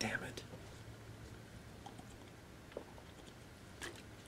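A man drinks from a water bottle.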